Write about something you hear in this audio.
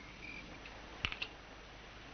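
A key clicks and rattles in a lock.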